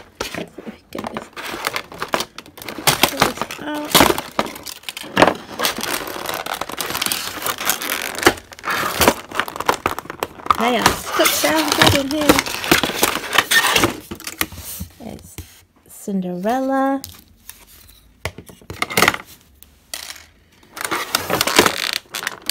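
Small plastic figures click against a plastic tray.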